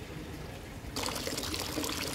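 Water from a fountain splashes steadily into a basin.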